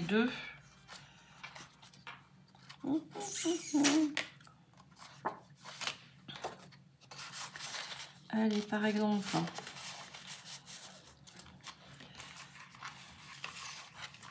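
Paper rustles and slides as hands handle sheets of card.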